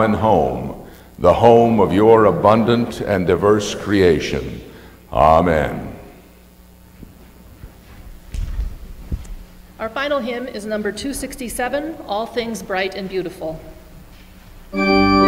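A man speaks calmly over a loudspeaker in a large echoing hall.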